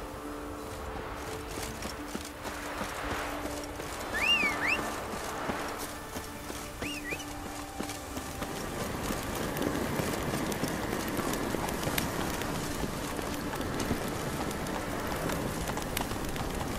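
Footsteps run quickly over stone and gravel.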